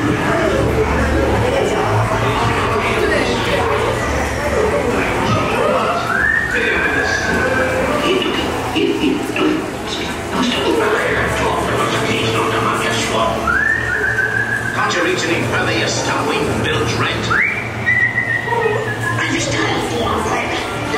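Men call out and plead with animation through loudspeakers in an echoing space.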